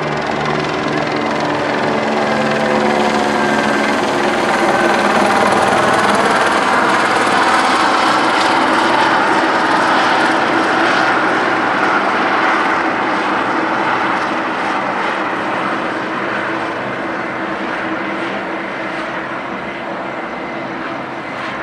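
Sirens wail from emergency vehicles on a street below.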